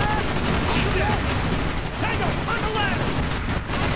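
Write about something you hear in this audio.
Rifle gunfire rattles in bursts.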